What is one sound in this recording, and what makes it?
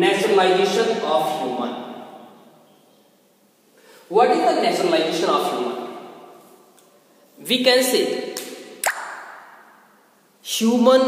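A man speaks loudly and clearly in a room with a strong echo.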